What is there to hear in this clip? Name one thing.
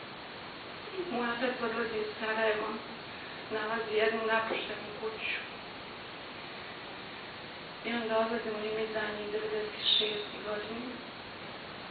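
A woman speaks calmly into a microphone, with pauses between phrases.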